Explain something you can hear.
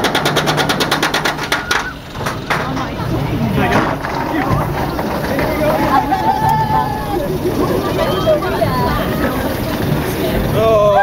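A roller coaster car rumbles and rattles along its track.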